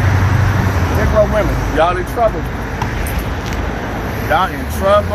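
A man speaks in short phrases close by, outdoors.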